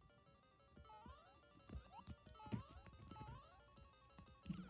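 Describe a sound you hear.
Short electronic blips sound as a game character jumps.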